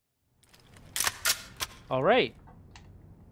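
A pistol's slide racks back and snaps forward with sharp metallic clicks.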